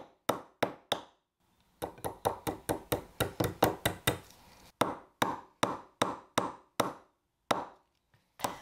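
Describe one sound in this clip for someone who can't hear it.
A small hammer taps sharply on wood in quick blows.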